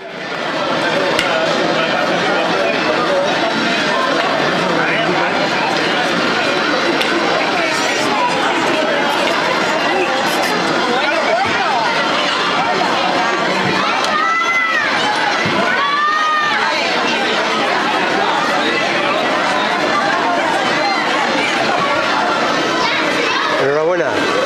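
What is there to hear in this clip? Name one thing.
A dense crowd of men, women and children chatters loudly all around outdoors.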